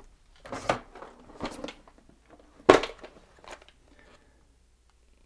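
Plastic boxes and papers rustle and clatter as they are handled.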